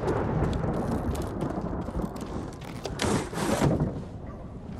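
A wooden sliding door slides open.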